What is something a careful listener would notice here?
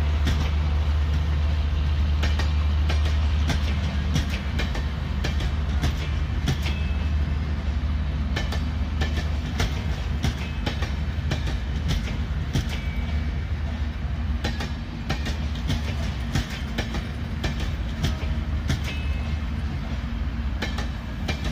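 A passenger train rolls past close by with a steady low rumble.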